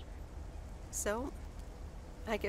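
A woman speaks softly through a microphone.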